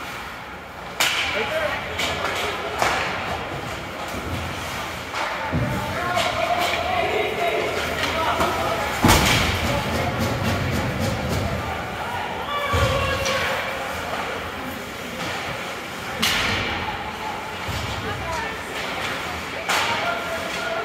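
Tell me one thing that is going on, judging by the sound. Hockey sticks and pucks clack sharply against the ice and boards in a large echoing rink.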